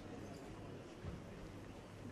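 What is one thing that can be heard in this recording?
A glass is set down on a table with a soft knock.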